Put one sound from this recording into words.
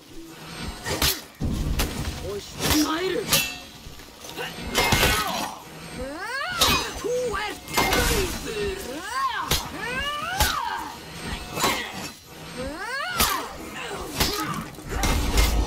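Metal weapons clash and strike sharply again and again.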